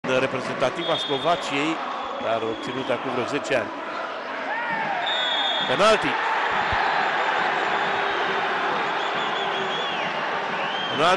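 A large stadium crowd roars and whistles, growing louder.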